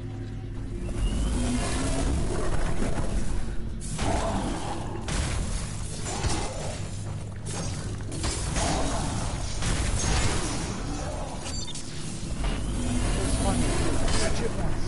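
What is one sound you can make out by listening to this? Metal blades clash and slash in a fierce fight.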